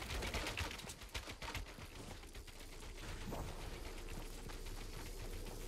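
Footsteps thud quickly on wooden stairs.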